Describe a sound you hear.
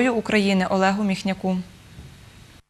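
A young woman speaks calmly and clearly into a microphone.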